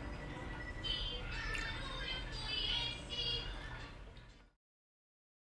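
Milk pours into a cup of coffee with a soft splash.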